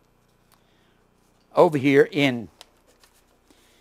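Paper pages rustle as they are turned.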